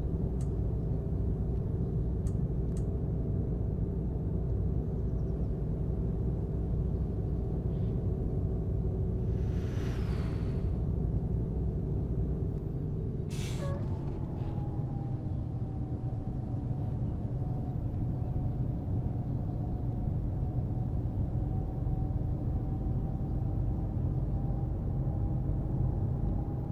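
A bus engine drones steadily, its pitch dropping as the gear changes.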